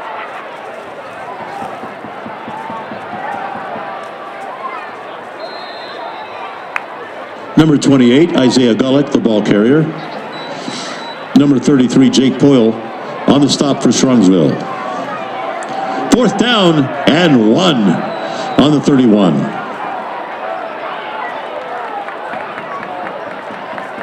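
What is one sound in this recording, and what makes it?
A crowd murmurs and cheers in open air at a distance.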